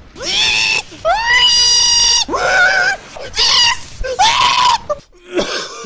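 A man sings loudly in long, drawn-out notes close to a microphone.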